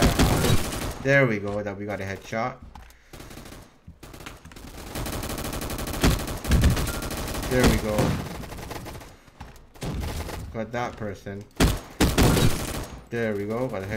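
Rapid rifle gunfire bursts and cracks.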